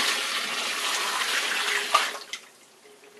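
A dishwasher rack rattles as it slides along its rails.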